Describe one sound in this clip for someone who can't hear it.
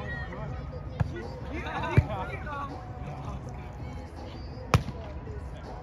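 A volleyball is hit with a sharp slap.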